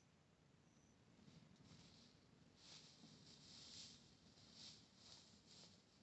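Footsteps rustle through dry grass some way off.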